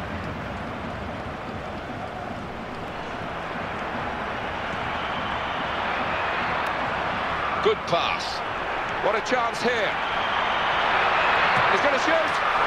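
A stadium crowd roars steadily and slowly swells louder.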